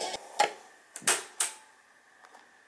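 Buttons on a cassette player click and clunk as they are pressed.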